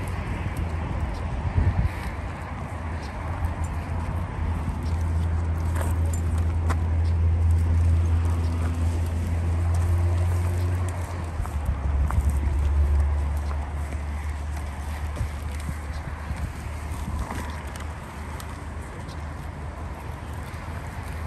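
Plastic bags rustle as litter is picked up.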